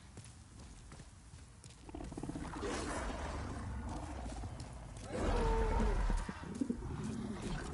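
Armoured footsteps run on stone.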